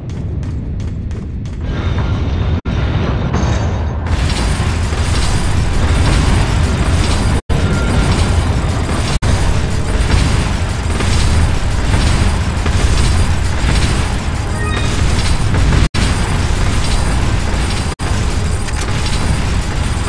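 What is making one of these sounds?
Heavy footsteps clang on a metal grating.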